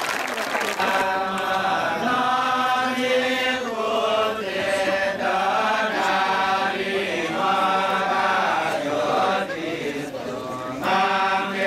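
A large group of men chants together in rhythm.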